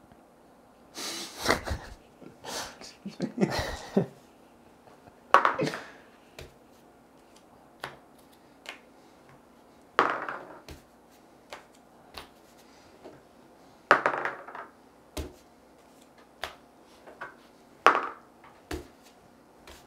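Playing cards are shuffled and flicked in short bursts.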